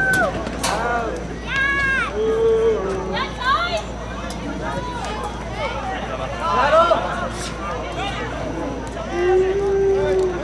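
Spectators chatter at the sideline.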